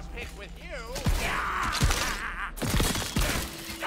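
A gun fires several loud shots.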